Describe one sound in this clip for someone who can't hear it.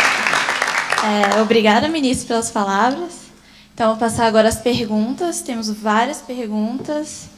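A young woman speaks calmly into a microphone over loudspeakers in an echoing hall.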